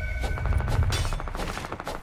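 A pickaxe swings and strikes with a sharp whack.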